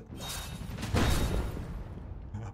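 A blast bursts with a loud whooshing roar.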